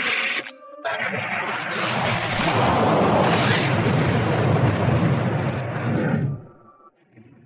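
A swirling portal roars.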